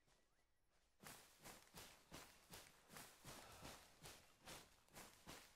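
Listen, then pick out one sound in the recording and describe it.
Footsteps crunch steadily through dry grass and undergrowth.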